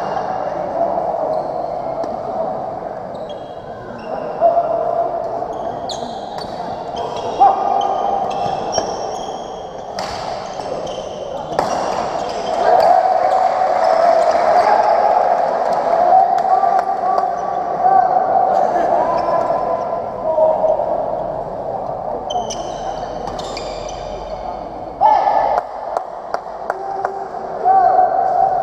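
Sports shoes squeak on a wooden court floor.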